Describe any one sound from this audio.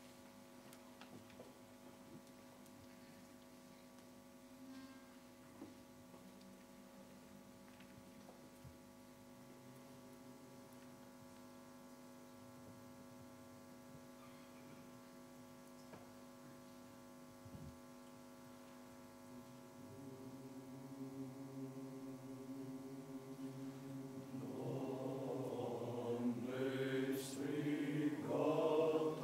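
A men's choir sings together in a large echoing hall, swelling louder toward the end.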